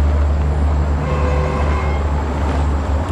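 A train horn sounds briefly in the distance.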